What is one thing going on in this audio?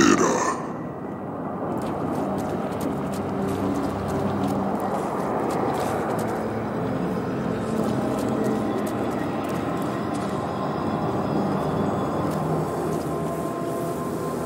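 An energy beam hums and crackles steadily.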